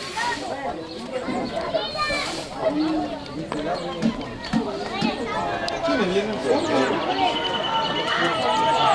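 A crowd of men shouts and cheers excitedly outdoors.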